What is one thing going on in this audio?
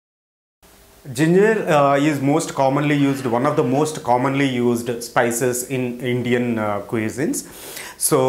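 A man speaks calmly and close up.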